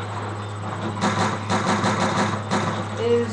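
Gunshots from a video game fire in quick bursts through a television speaker.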